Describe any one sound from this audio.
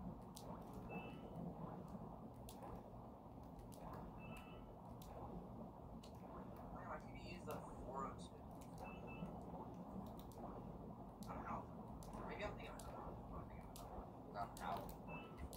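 A short bright chime rings now and then.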